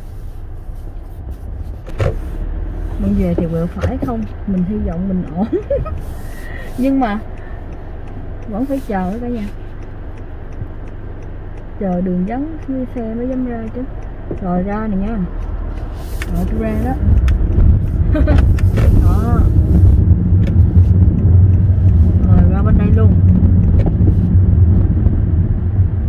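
A car engine hums steadily from inside, growing louder as the car speeds up.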